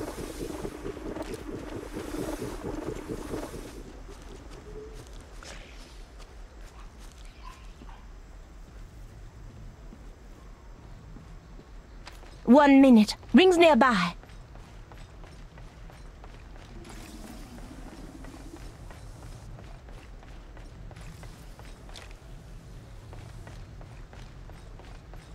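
Footsteps thud quickly and steadily on the ground.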